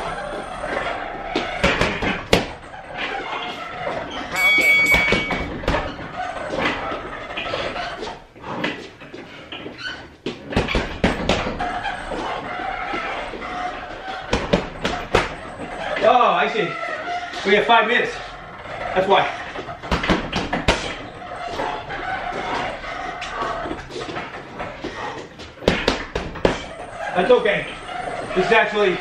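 Gloved fists thud against a heavy punching bag.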